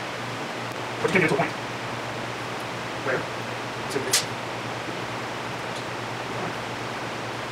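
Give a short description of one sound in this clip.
Metal tools click against a motorcycle chain.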